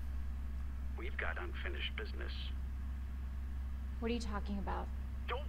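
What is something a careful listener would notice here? A young woman speaks into a phone, sounding puzzled.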